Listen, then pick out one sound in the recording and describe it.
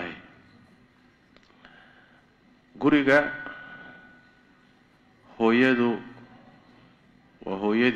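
An elderly man speaks emphatically into a microphone, in short bursts with pauses.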